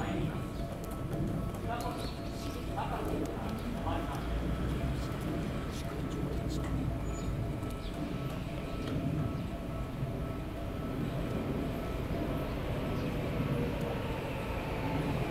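A train rumbles closer along the tracks.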